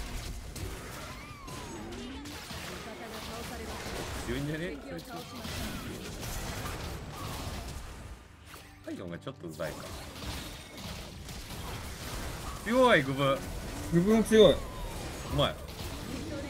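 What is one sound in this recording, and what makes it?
A young man commentates with animation through a microphone.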